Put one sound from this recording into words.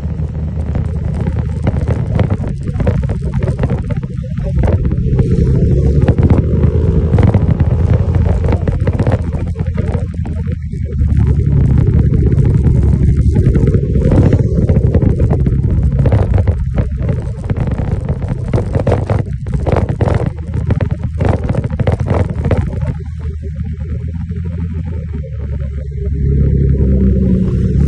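A motorcycle engine hums steadily up close as it rides along a road.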